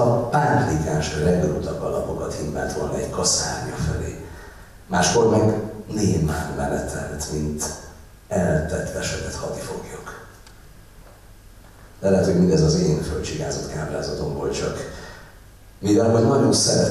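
A middle-aged man reads out calmly through a microphone in an echoing hall.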